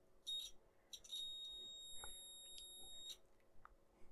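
A multimeter beeps steadily for a few seconds.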